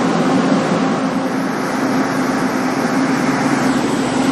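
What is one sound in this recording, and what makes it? A train rumbles and clatters as it pulls past close by.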